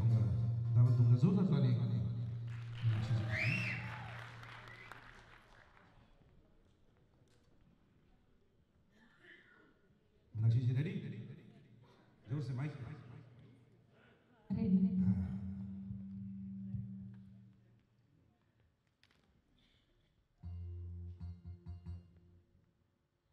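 A band plays music on stage.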